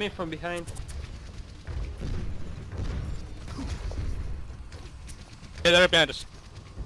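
Gunfire and explosions rumble in a fight.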